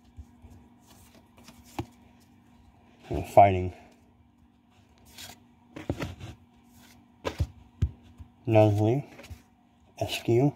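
Playing cards rustle and snap as they are handled.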